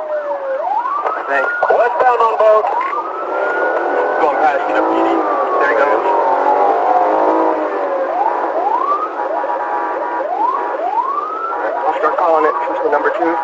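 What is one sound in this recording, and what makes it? A police car siren wails and yelps.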